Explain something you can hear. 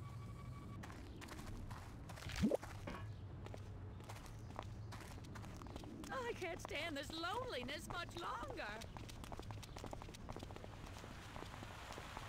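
Slow footsteps shuffle on pavement.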